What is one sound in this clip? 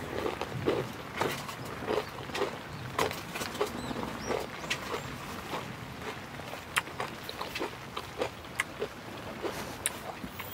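Crunchy cereal rustles as a spoon stirs it.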